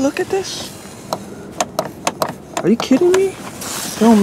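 A car door handle clicks as it is pulled.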